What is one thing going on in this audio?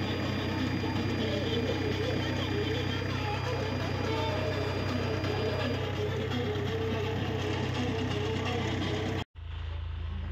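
A tractor engine rumbles steadily while driving.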